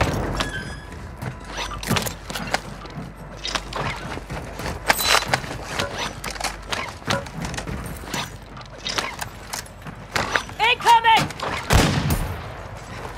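Short clicks and clatters of gear being picked up sound again and again.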